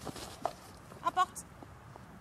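A woman calls out briefly outdoors.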